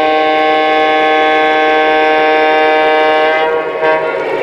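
A model train horn blares steadily, then cuts off.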